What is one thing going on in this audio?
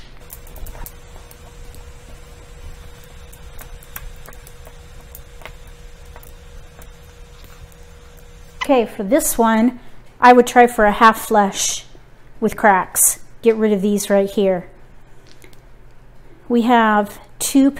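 Tiles click as they are set down one by one.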